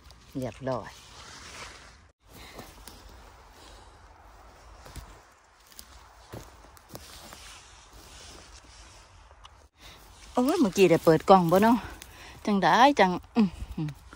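Spruce branches rustle and brush as they are pushed aside.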